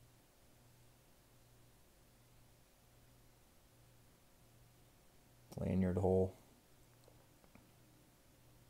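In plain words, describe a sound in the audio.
A folding knife blade clicks as it is closed.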